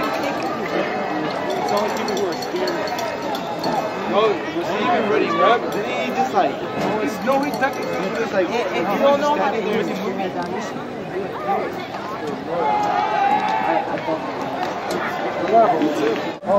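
A large outdoor crowd cheers and shouts.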